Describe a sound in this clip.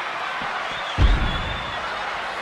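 A heavy body slams hard against metal steps.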